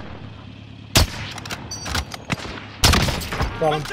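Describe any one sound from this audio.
A rifle fires sharp single shots.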